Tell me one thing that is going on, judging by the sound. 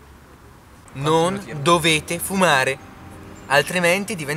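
A young man speaks casually, close by.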